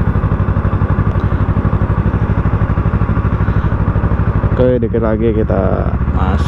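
A motorcycle engine idles close by with a steady, throbbing rumble.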